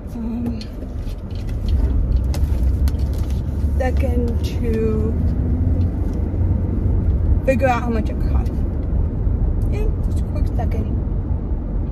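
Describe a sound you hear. A young woman talks close by in short bursts.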